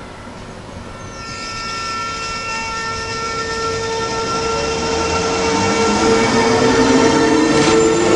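An electric train pulls away with a rising whine of its motors.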